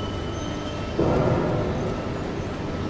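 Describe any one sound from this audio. A short musical chime rings out.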